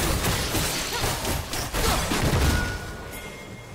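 Magic spell effects whoosh and crackle in a fast clash.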